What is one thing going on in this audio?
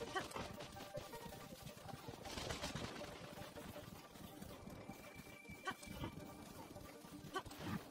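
A horse gallops over soft ground.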